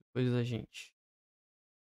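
A young man speaks into a microphone with animation.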